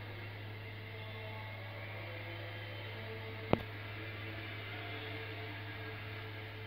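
Music plays faintly from a television's speakers.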